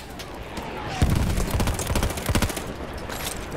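A rifle fires rapid shots that crack loudly.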